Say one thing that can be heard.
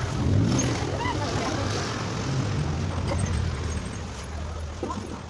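Traffic rumbles on a street nearby.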